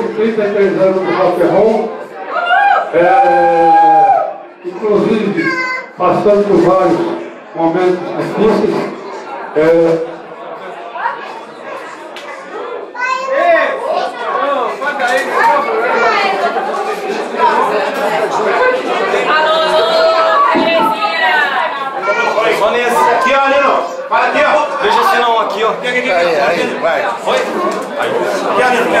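An elderly man sings loudly into a microphone through a loudspeaker.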